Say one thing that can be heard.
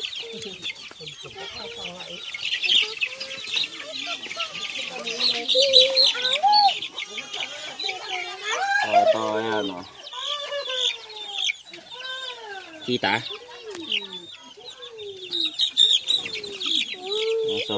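Chicks peep loudly and repeatedly.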